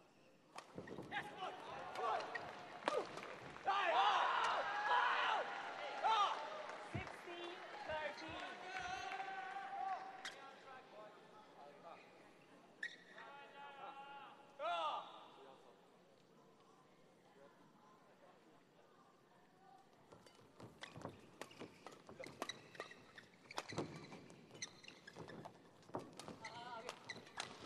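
A shuttlecock is struck sharply back and forth by rackets.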